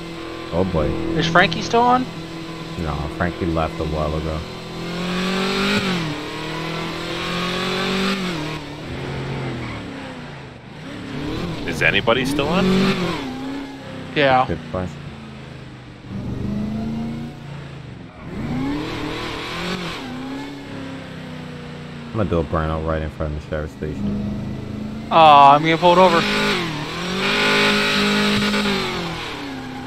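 A powerful car engine revs up and down as the car speeds along.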